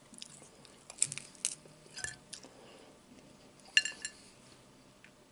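A man chews something crunchy close by.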